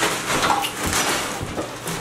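A plastic trash bag crinkles.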